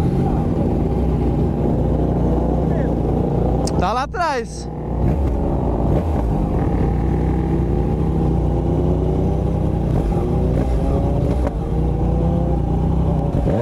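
Motorcycle engines hum steadily close by.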